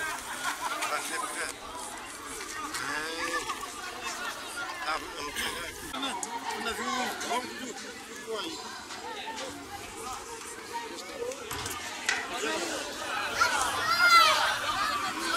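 A crowd of men and women chatters and shouts outdoors.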